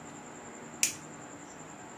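A lighter clicks once.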